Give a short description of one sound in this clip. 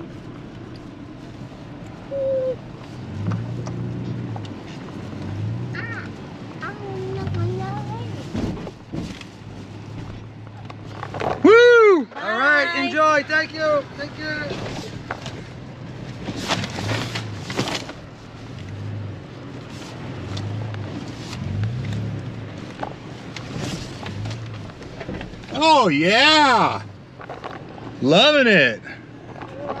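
A car engine hums steadily while driving over a bumpy dirt track.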